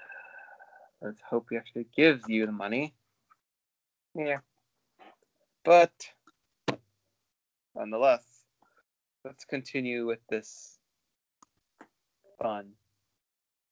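A young man speaks casually over an online call.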